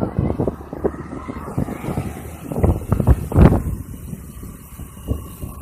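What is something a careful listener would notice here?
An electric bicycle's hub motor whirs as the bicycle rides along.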